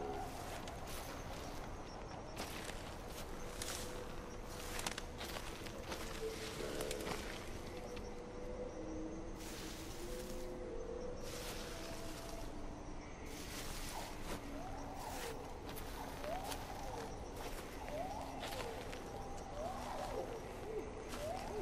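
Tall dry grass rustles and swishes as someone pushes through it.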